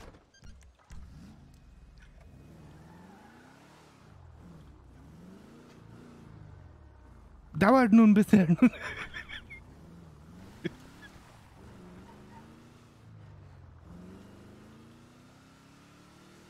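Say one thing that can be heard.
A car engine hums and revs up again and again as the car drives off.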